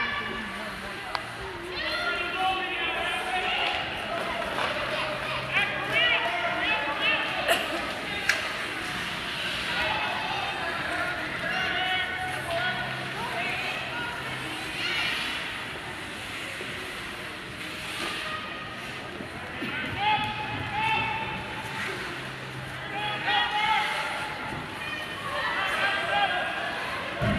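Young children shout and call out across a large echoing ice rink.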